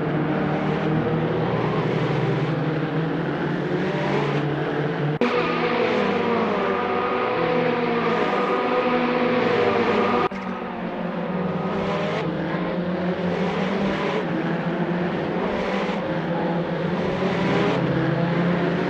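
Racing car engines roar and whine as they rev up and down.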